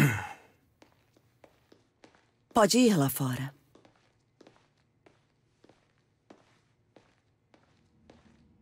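Footsteps tap on a hard floor at an even pace.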